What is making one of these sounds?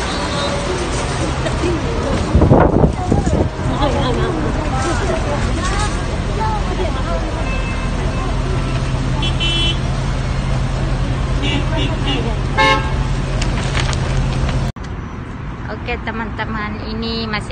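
Women talk and call out nearby.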